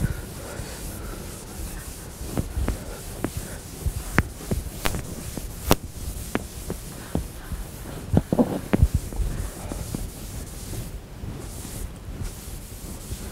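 An eraser rubs against a chalkboard.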